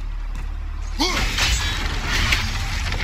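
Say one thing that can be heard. An axe strikes metal with a ringing clang.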